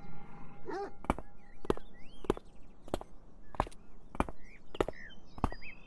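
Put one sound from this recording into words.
Footsteps fall at an even pace on a path.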